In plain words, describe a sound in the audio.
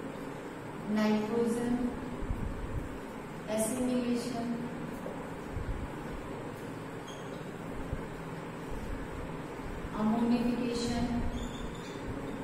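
A woman speaks calmly in short phrases nearby.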